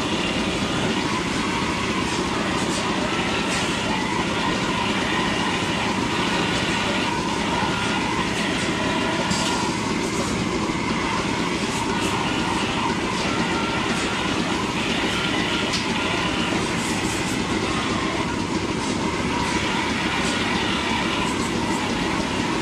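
Water sprays from a hose in a steady hiss.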